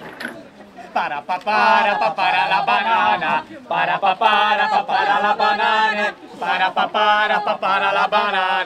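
A young man sings loudly.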